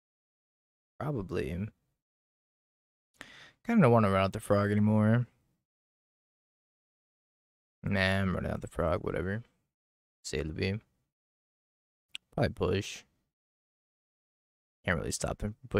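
A man talks casually into a close microphone, in short bursts with pauses.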